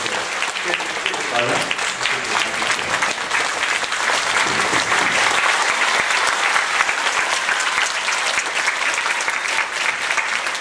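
A crowd of people shout and call out excitedly.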